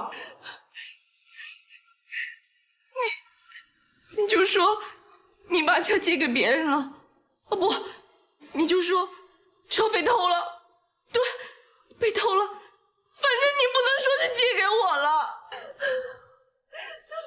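A young woman speaks tearfully and pleadingly, close by.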